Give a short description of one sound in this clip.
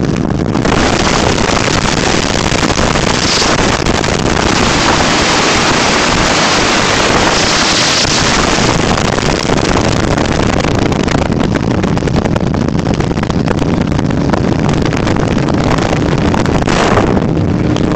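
Wind roars loudly against the microphone.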